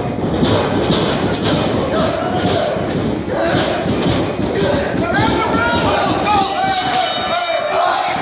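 A wrestler stomps on an opponent lying on a ring mat.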